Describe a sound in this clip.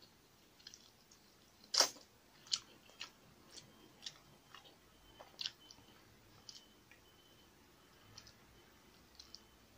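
A woman chews and smacks her lips close up.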